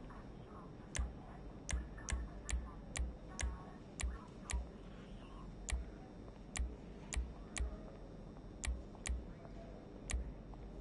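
Short menu clicks sound one after another at an uneven pace.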